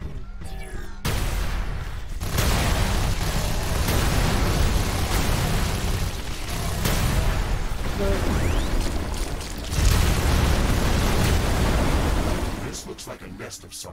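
Laser guns fire in rapid bursts amid loud crackling blasts.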